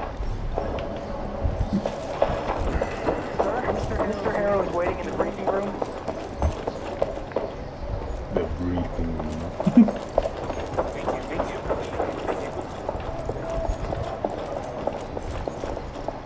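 Footsteps thud on wooden floors and stairs.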